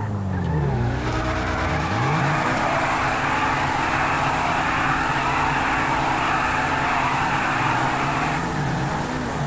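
Tyres screech loudly in a long skid.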